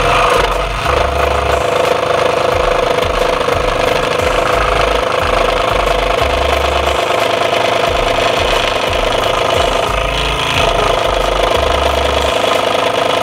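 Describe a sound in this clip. A scroll saw buzzes steadily while cutting through wood.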